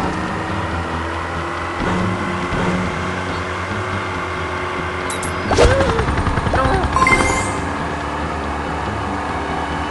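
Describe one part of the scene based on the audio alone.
A jet ski engine hums steadily.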